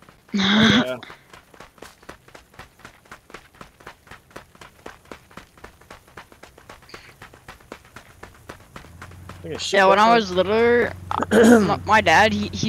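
Footsteps run quickly over a dirt road.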